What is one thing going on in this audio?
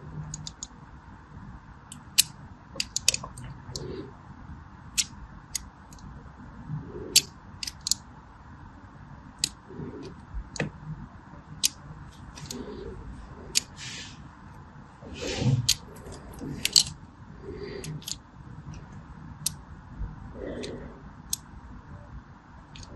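A blade slices into a bar of soap with crisp, crunchy clicks.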